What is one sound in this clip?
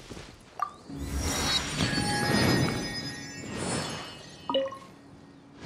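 A shimmering magical chime rings out and fades.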